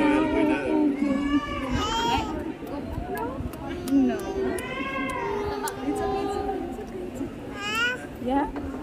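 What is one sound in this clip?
A young woman talks to a baby close by, in a soft, playful voice.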